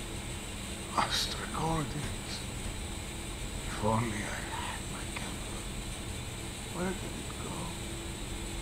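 A wounded man speaks weakly and brokenly.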